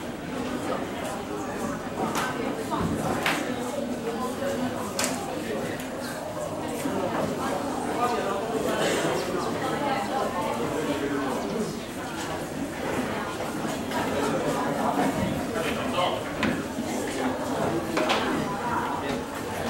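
Many teenagers chatter and laugh together in an echoing room.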